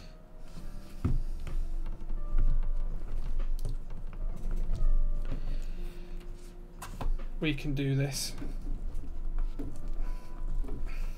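Metal keyboard plates clack and rattle as they are handled.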